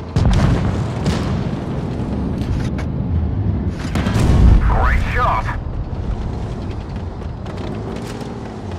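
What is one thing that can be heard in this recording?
A heavy tank engine rumbles low as the tank drives.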